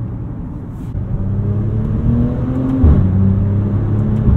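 A car engine revs up loudly and its pitch rises.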